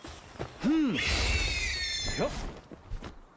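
A large bird creature screeches.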